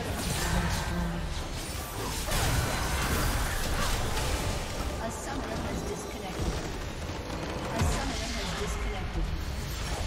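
Game spell effects crackle and blast during a battle.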